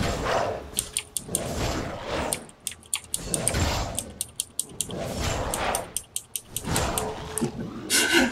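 Weapon blows clash and thud repeatedly in a fight.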